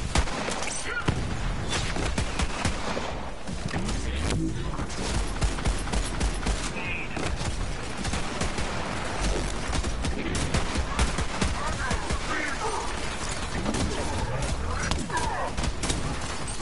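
Gunfire and blasts from a video game crackle rapidly.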